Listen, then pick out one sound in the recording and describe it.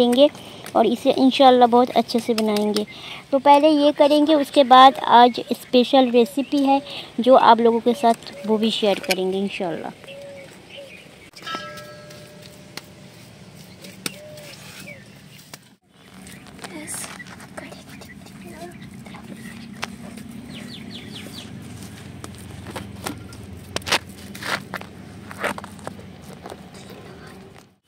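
Wet mud squelches softly under hands pressing and smoothing it.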